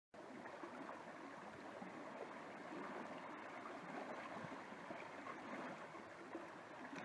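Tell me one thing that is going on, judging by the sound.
Gentle waves lap and wash over rocks along a shore.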